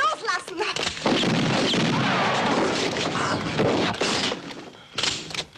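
A violent scuffle crashes and thuds nearby.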